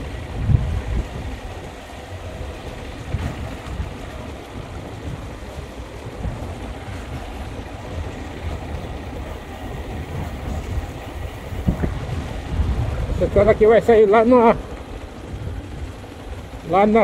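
Tyres rumble over a cobblestone road.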